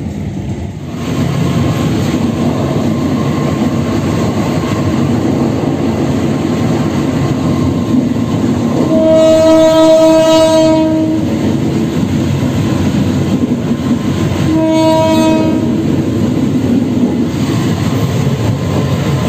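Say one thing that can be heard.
A locomotive engine rumbles steadily.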